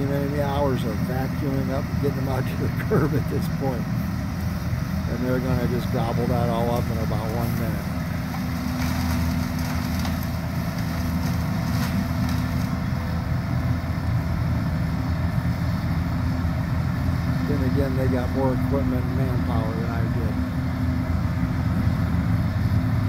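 A truck's vacuum pump roars steadily outdoors.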